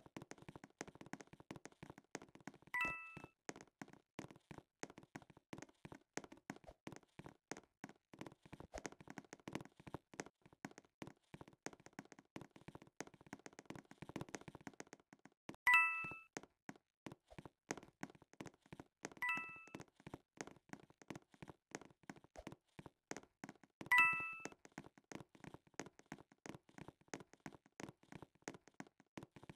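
Quick footsteps patter steadily on a hard floor in a game.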